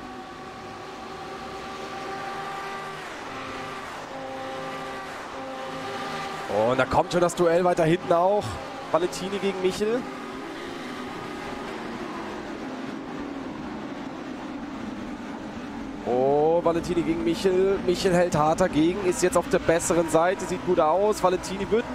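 Racing car engines roar steadily as the cars speed past.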